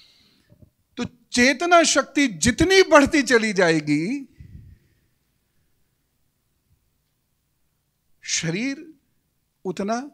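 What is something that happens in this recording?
A middle-aged man speaks with animation into a close microphone, pausing now and then.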